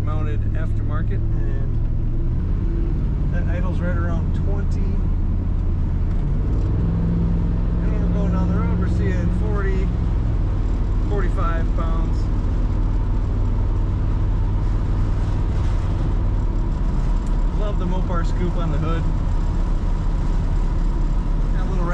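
Wind and road noise roar steadily around a moving car.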